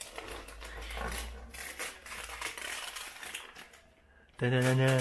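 Wrapping paper crinkles and rustles as it is torn open.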